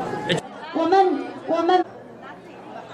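A group of young people shout and cheer together loudly.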